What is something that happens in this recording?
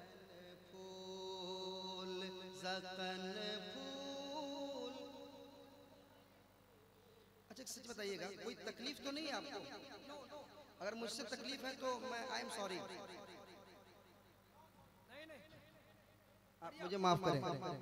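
A man sings and chants with feeling into a microphone, heard through loudspeakers in a reverberant space.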